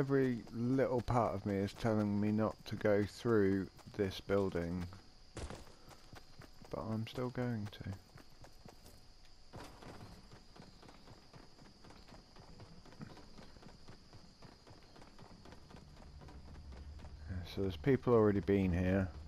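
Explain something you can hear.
Quick footsteps patter over ground and up metal stairs.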